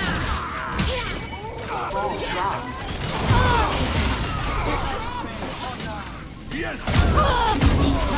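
A gun fires rapid energy shots.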